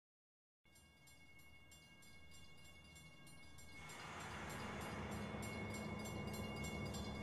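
Music plays, with rhythmic chimes, growing louder.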